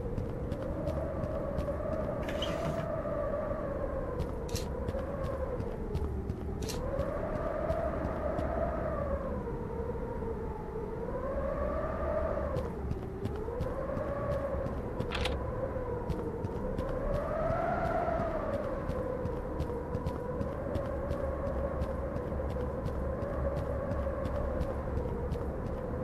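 Footsteps tap steadily on a stone floor.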